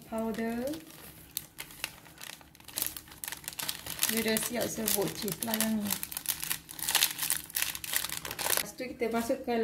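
A paper packet crinkles as powder is shaken out of it.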